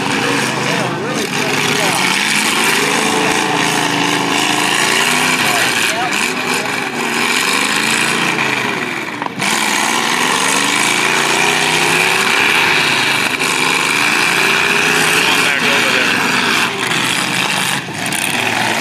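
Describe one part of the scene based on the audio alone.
Metal crunches as cars crash into each other.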